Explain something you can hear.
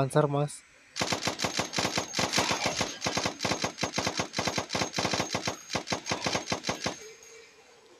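A rapid burst of gunfire rattles fast and loud.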